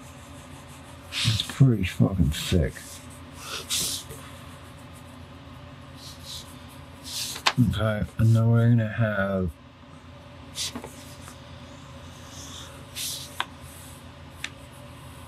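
A pen scratches and scribbles on paper.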